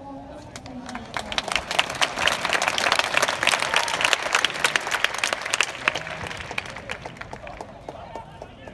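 A crowd of fans claps rhythmically across an open stadium.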